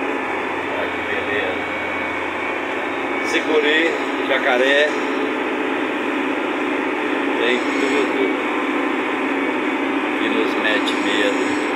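A heavy machine's diesel engine rumbles steadily from inside the cab.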